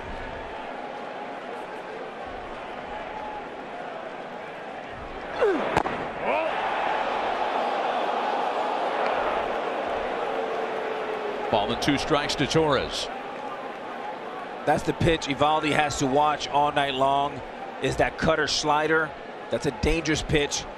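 A large stadium crowd cheers and roars, swelling loudly for a while.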